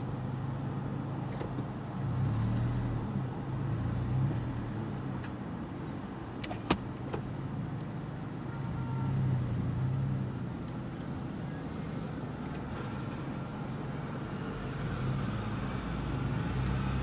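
Traffic passes by outside.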